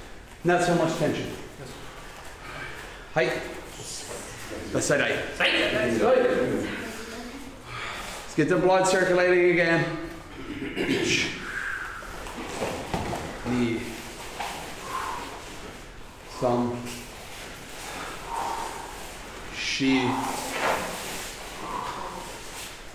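A man shouts out loud commands in an echoing room.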